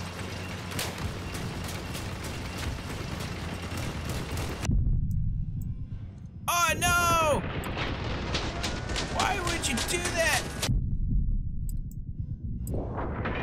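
Guns fire in rapid bursts of shots.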